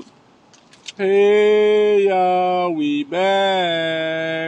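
A man talks loudly and drawn out close to a phone microphone.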